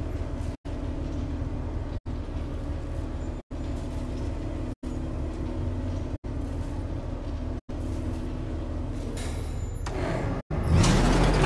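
A vehicle engine idles with a low, steady rumble.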